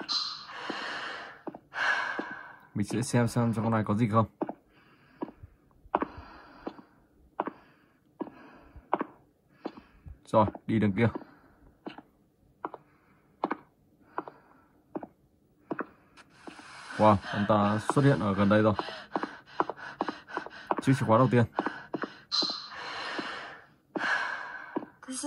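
Footsteps tap steadily from a tablet game's small speaker.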